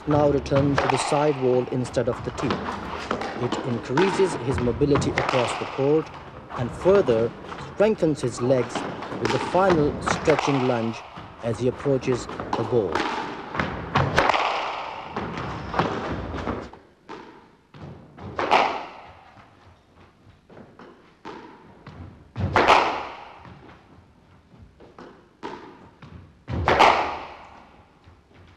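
A squash ball smacks off a racket and the wall, echoing in a hard-walled court.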